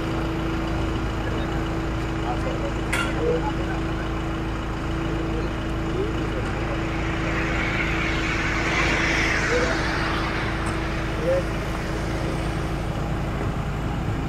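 Traffic hums steadily outdoors in the background.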